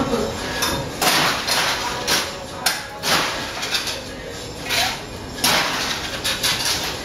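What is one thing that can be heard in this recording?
A muddler grinds and knocks in a glass.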